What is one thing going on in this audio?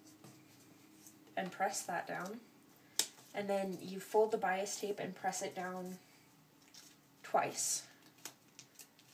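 Fabric rustles softly as hands fold and smooth it.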